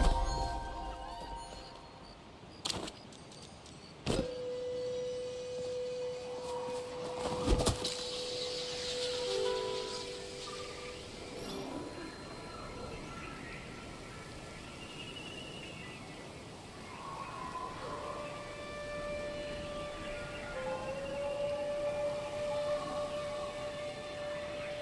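Soft, chiming game music plays throughout.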